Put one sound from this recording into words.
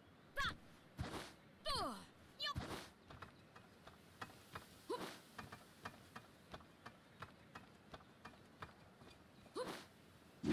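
Footsteps patter quickly across a tiled roof.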